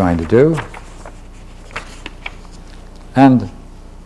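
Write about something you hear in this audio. A book page rustles as it turns.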